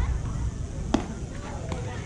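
A bat knocks sharply against a ball.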